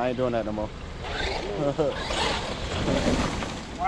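A toy car's electric motor whirs as it drives over wood chips.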